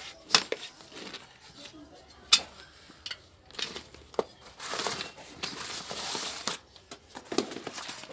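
A bicycle tyre rubs and scrapes against a wheel rim.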